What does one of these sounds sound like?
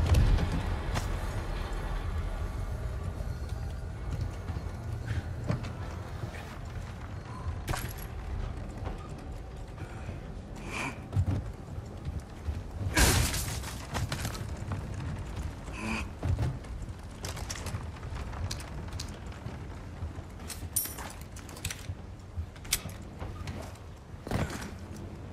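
Footsteps thud on creaking wooden boards.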